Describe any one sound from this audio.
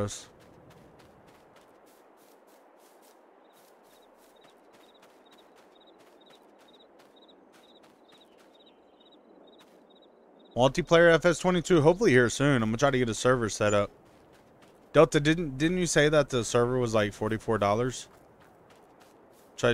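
Footsteps tread softly over grass and gravel.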